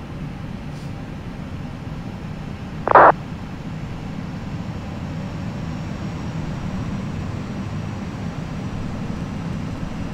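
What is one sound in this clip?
Jet engines roar steadily as an airliner rolls down a runway.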